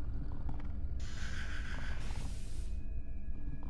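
A heavy sliding door opens with a hiss.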